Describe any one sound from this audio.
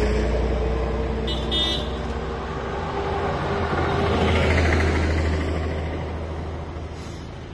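An articulated bus hums past and fades away.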